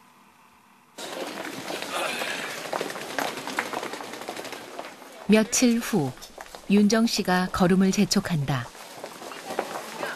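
A crowd murmurs and footsteps echo in a busy indoor passage.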